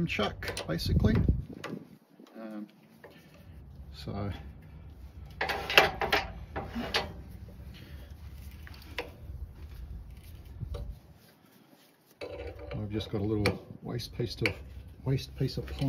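Metal parts click and scrape as a lathe chuck is tightened.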